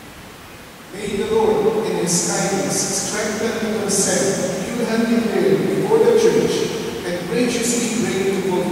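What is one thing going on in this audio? A young man repeats words aloud nearby.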